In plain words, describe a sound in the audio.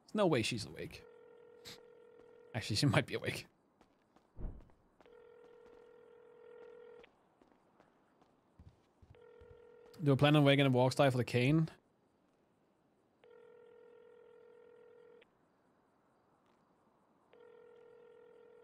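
A phone call's ringing tone sounds in steady repeated bursts.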